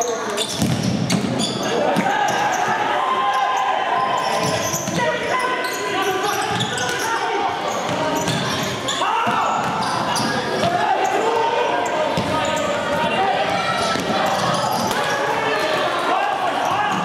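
A ball thuds sharply as it is kicked.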